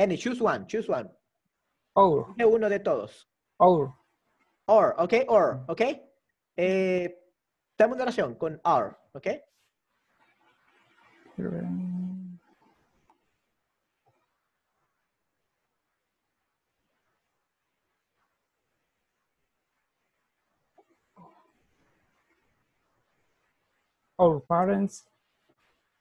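A man speaks calmly and clearly into a microphone, pausing between phrases.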